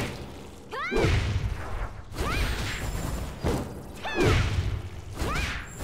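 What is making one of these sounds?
Magic blasts burst with a bright crackle.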